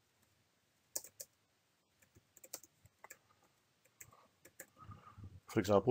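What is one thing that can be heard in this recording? Keyboard keys click softly in short bursts.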